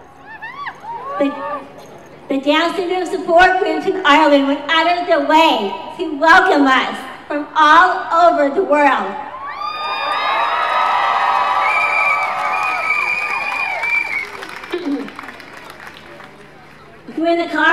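A middle-aged woman speaks with feeling into a microphone, heard outdoors through loudspeakers.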